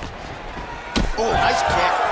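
A kick lands with a thud.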